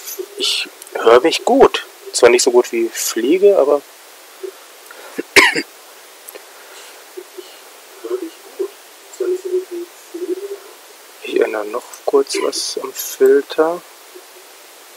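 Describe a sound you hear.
A young man talks with animation over a headset microphone, as in an online call.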